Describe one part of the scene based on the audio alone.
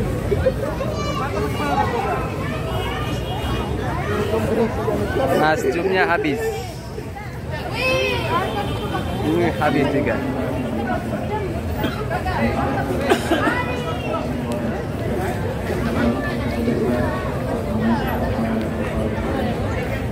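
A crowd of men and children chatter all around outdoors.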